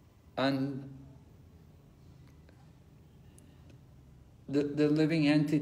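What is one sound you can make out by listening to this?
An elderly man speaks close to a phone microphone.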